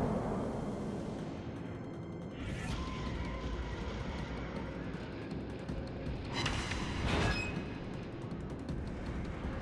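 Water rushes along a ship's hull.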